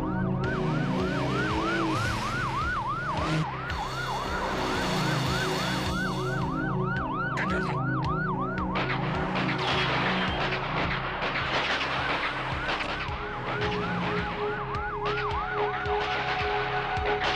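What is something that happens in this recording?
A car engine roars as vehicles drive fast.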